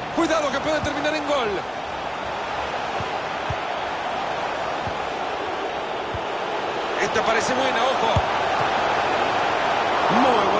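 A large crowd roars steadily in a stadium, swelling louder toward the end.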